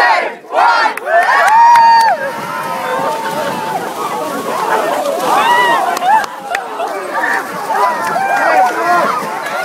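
A crowd of young men and women cheers and screams excitedly outdoors.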